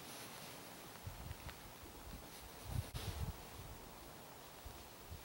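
Clothing and gear rustle close by in a quiet wood.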